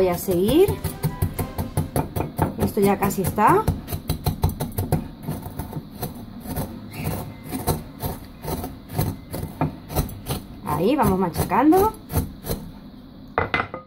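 A wooden pestle pounds and crushes biscuits in a glass bowl with quick, dull thuds.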